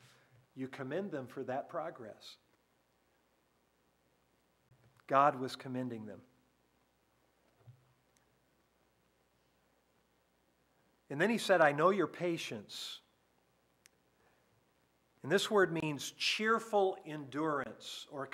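An elderly man speaks calmly and deliberately through a microphone, with long pauses.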